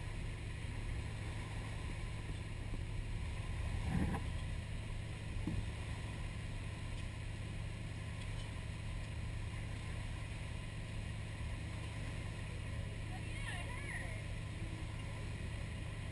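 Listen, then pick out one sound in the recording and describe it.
A boat's motor drones while the boat is under way.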